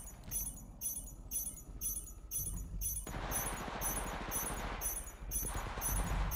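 Footsteps thud quickly as a game character runs.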